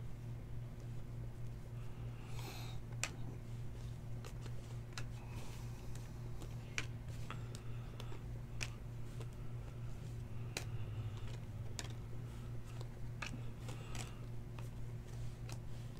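Trading cards flick and click as they are shuffled by hand.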